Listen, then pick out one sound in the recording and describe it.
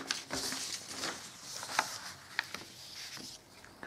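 Paper rustles as a sheet is shifted.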